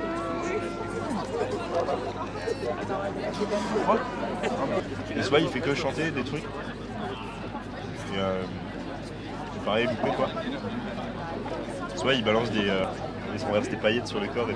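A second young man answers in a relaxed voice.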